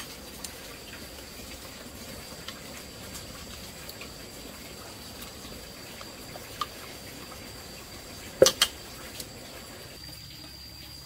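Liquid simmers in a pot.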